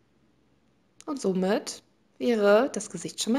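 A young woman speaks close by, with animation.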